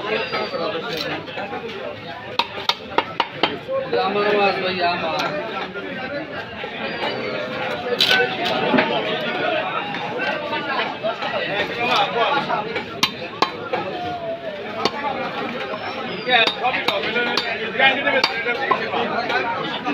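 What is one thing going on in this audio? Chunks of fish thump and slap onto a wet surface.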